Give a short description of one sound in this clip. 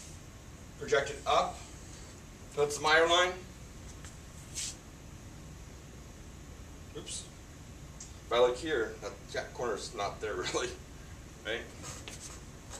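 A man speaks calmly in short bursts, explaining.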